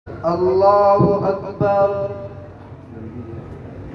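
A man recites in a long, melodic chant through a microphone.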